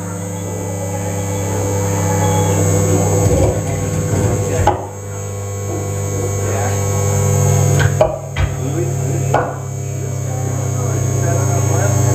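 Loud electronic music with a deep droning bass plays through speakers.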